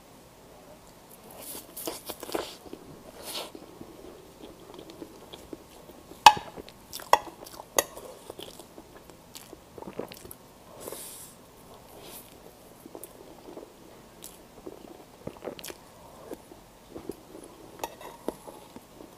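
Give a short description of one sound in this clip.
A young woman chews and smacks her lips wetly, close to a microphone.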